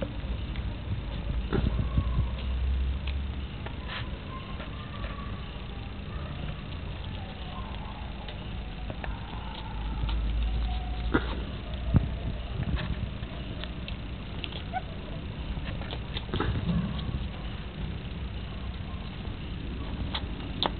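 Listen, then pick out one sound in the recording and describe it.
Puppies scuffle and paw at a cloth.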